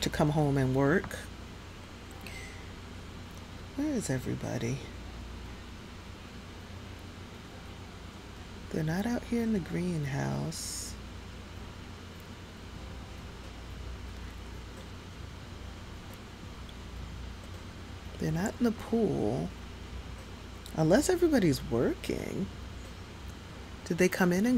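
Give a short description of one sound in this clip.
A young woman talks with animation into a headset microphone, in short bursts.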